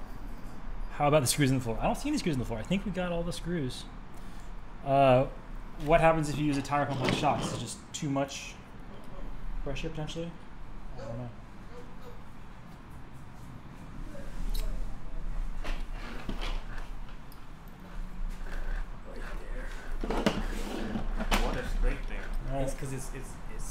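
A young man talks and laughs nearby.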